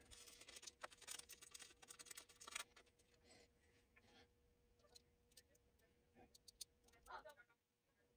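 Paper rustles and crinkles between fingers.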